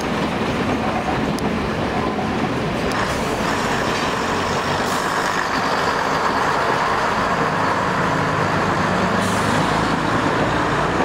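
A train rumbles past close by, its wheels clattering on the rails.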